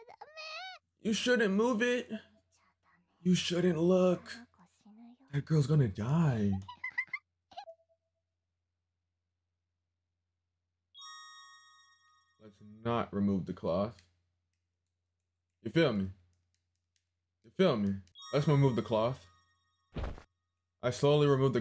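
A young man talks into a close microphone, with animation.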